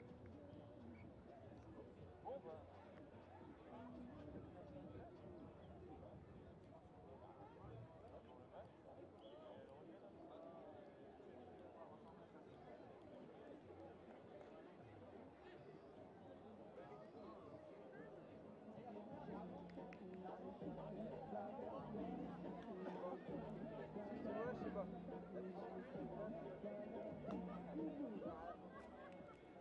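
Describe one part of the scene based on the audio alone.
A crowd of spectators chatters and cheers in the distance outdoors.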